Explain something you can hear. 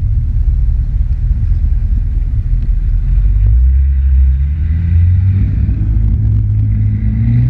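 Water rushes and slaps against a jet ski's hull.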